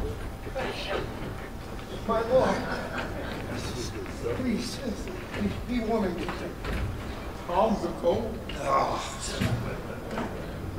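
A man speaks with animation, heard through a microphone in a large echoing hall.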